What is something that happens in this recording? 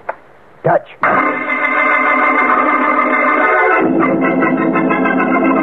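Music plays through an old radio loudspeaker.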